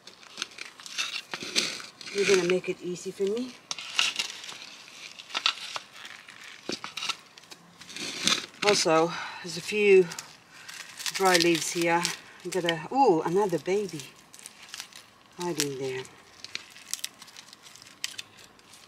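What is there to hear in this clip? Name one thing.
Soil rustles and crunches as hands press around a potted plant.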